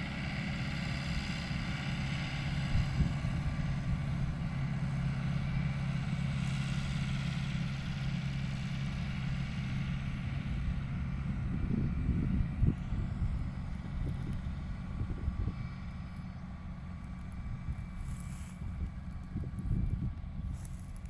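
A tractor engine hums steadily as it drives past and slowly fades.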